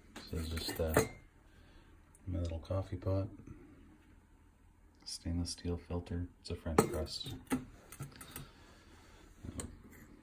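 A metal container clinks and knocks as a hand handles it.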